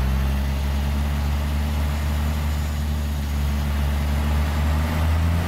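A heavy truck engine idles with a steady low rumble.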